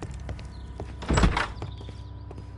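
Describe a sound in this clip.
A wooden door opens.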